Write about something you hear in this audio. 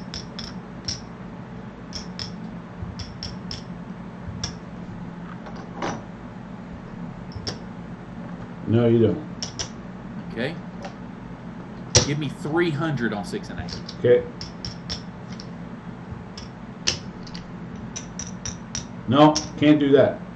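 Casino chips clack as they are stacked and moved.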